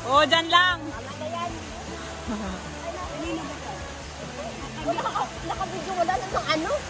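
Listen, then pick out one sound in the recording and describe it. Young adults chat casually outdoors.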